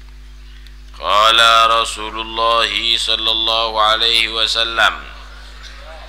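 A man sings a drawn-out melody close to a microphone.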